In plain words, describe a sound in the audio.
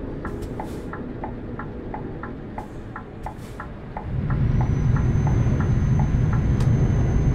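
A turn signal ticks at a quick, even pace, then stops.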